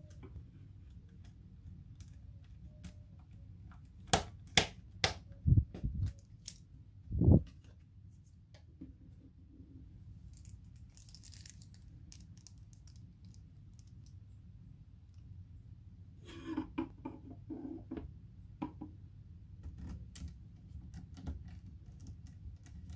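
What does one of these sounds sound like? A screwdriver clicks and scrapes against small metal screws.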